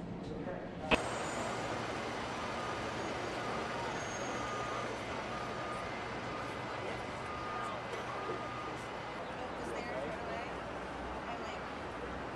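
Fire engines idle with a low rumble outdoors.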